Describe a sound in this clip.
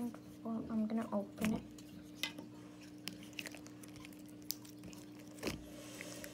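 A soft plastic bottle crinkles and crackles as fingers squeeze it.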